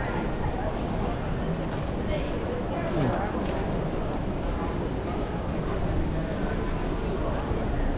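Many footsteps shuffle on stone paving.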